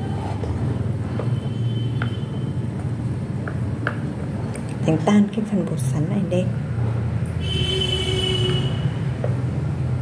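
Chopsticks stir and tap against a small ceramic bowl.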